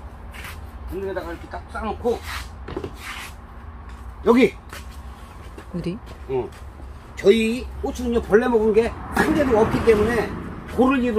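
A middle-aged man talks close by with animation.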